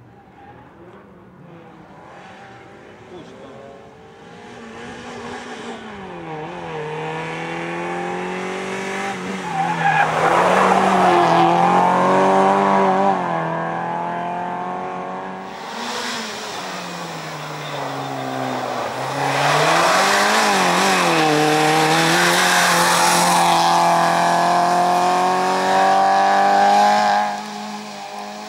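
A rally car engine roars and revs hard as the car races past, shifting gears.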